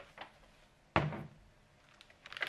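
A jar is set down on a table with a knock.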